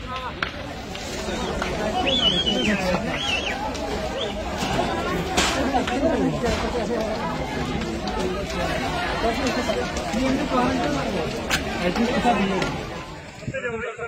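A crowd of men and women shout and wail nearby.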